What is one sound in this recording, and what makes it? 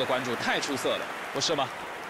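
A large crowd cheers and murmurs in a stadium.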